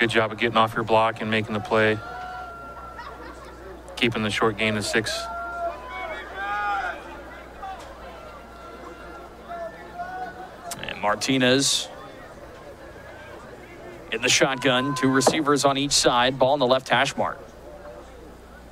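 A crowd murmurs and calls out in outdoor stands.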